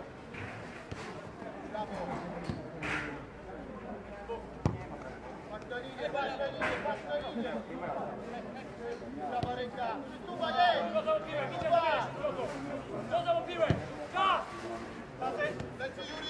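A football is kicked with dull thuds on an open field.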